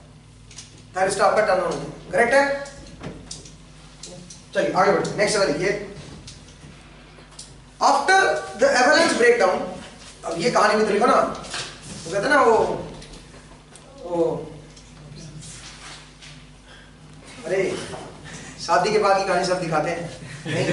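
A young man speaks calmly, pausing between phrases.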